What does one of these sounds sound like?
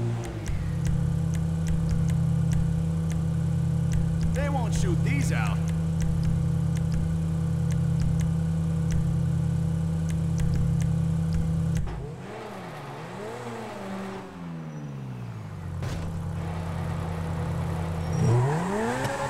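A sports car engine idles with a low rumble.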